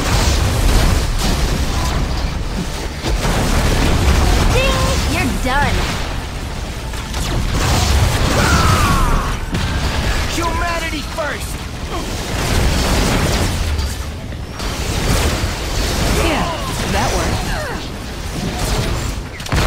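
Explosions boom and crackle again and again.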